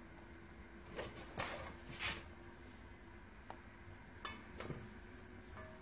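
A wooden spoon scrapes against a metal pot.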